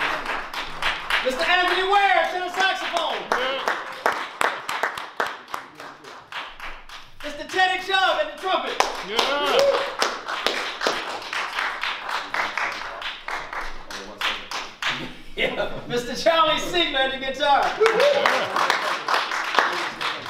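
A woman nearby claps along to the music.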